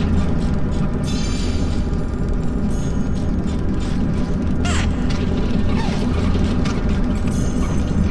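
A bright chime rings as a small robot picks up an item.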